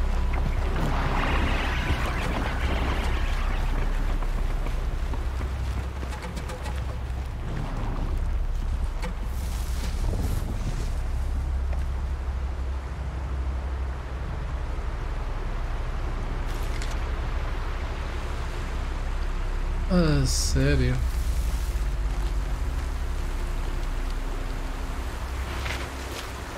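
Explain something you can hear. A stream rushes over rocks nearby.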